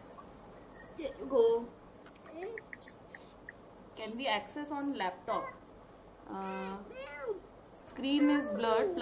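A young woman talks calmly over an online call.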